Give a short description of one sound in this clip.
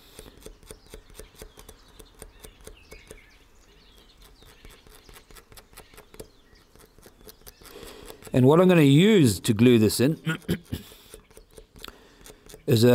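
A pencil scratches lightly across a hard piece of shell.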